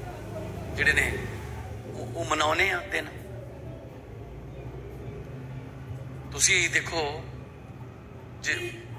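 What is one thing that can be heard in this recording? A man speaks with animation into a microphone, heard through a loudspeaker.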